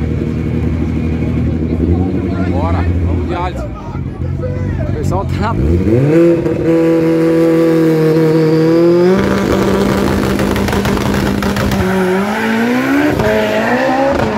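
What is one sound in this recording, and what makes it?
A race car engine idles and revs loudly, rising in pitch.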